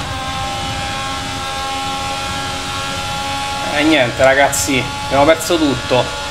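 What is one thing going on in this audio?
A racing car engine whines at high speed.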